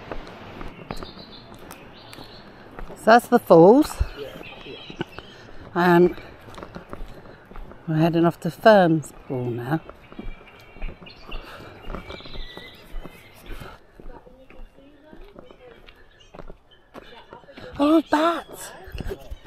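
Footsteps crunch on a dry dirt trail.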